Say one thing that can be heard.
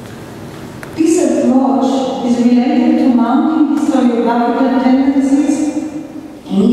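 A middle-aged woman speaks calmly into a microphone in an echoing hall.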